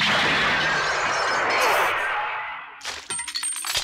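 An explosion roars and fades.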